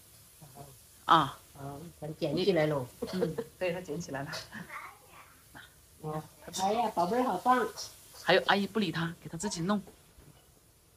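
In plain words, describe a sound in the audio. A middle-aged woman talks cheerfully close by.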